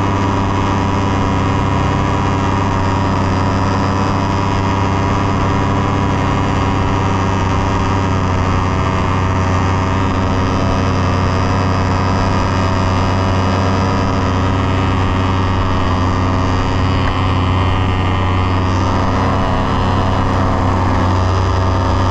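A paramotor engine drones loudly and steadily close by.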